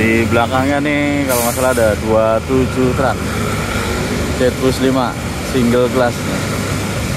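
A bus horn plays a loud, rapidly changing musical tune.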